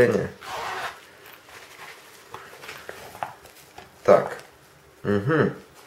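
A fabric travel wallet rustles as it is opened and folded.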